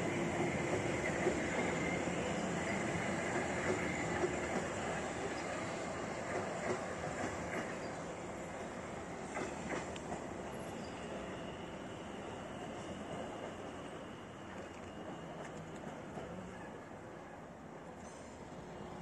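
A train rumbles past on the tracks and slowly fades into the distance.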